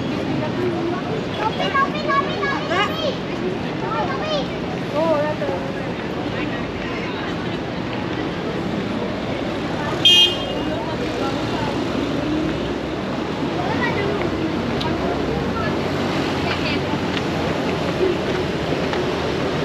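Footsteps shuffle on pavement and stairs.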